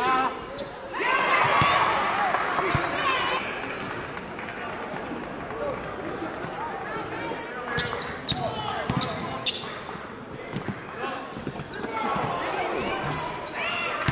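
A crowd cheers in a large echoing gym.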